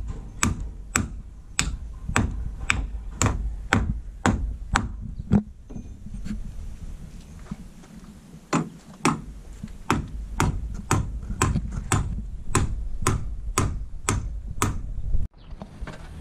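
A hammer strikes wood in quick, regular blows.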